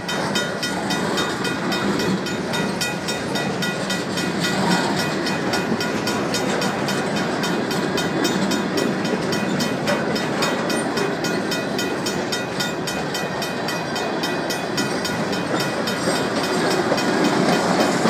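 Metal train cars squeal and rattle as they roll by.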